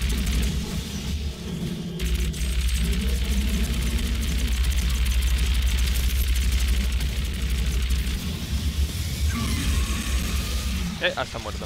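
Plasma bolts burst with low booms.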